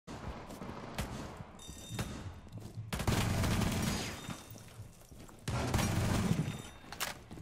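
A gun fires loud, rapid bursts close by.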